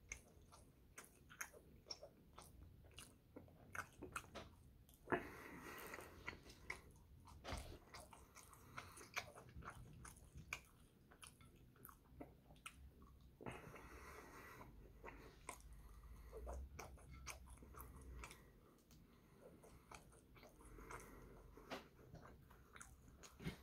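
Crisp food crunches and rustles between fingers.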